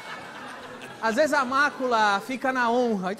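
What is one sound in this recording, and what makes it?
A young woman speaks loudly and with animation into a microphone.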